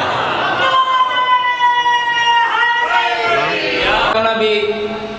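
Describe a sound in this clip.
A crowd of men chants loudly in unison.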